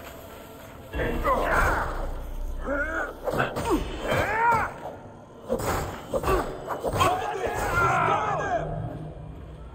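Blades clash and strike in a close fight.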